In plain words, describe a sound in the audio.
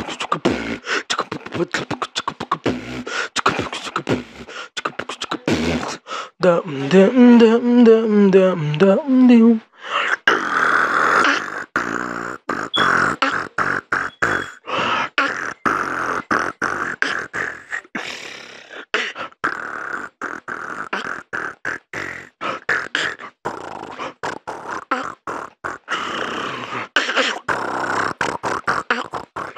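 A young man beatboxes close to a microphone, with quick rhythmic clicks, snares and hummed notes.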